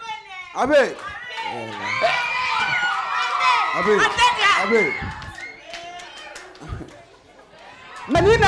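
A crowd cheers and shouts excitedly in a large hall.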